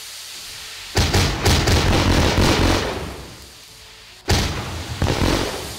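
Loud explosions burst and roar.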